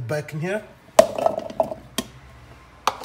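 Potato chunks tumble and clatter into a plastic container.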